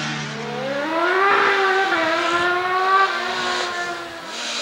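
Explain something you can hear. A racing car engine roars up close as a second car passes.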